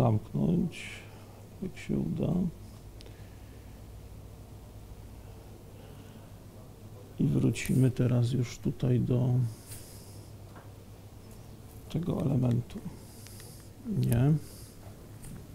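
A man speaks calmly through a microphone in a room, in short bursts with long pauses.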